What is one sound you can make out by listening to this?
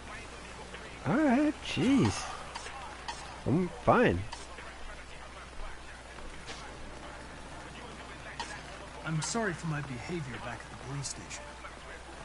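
A young man speaks calmly.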